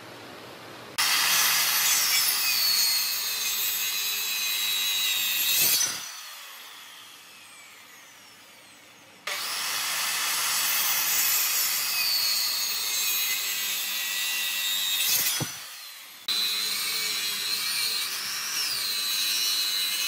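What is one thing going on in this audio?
An electric saw whines loudly as it cuts into wood.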